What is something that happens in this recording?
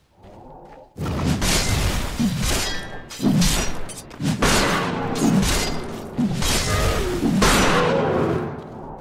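Magic blasts crackle and whoosh as fighters clash.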